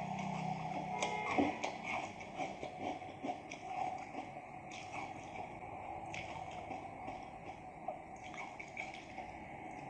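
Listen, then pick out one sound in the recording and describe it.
A woman chews wetly with her mouth close to the microphone.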